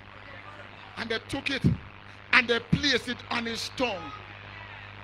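An elderly man preaches loudly and with animation through a microphone.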